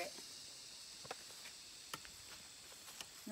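A machete chops into wood with sharp knocks.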